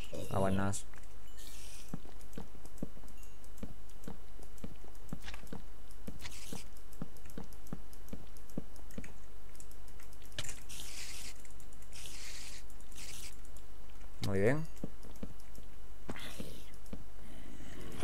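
Footsteps tap quickly and steadily on stone.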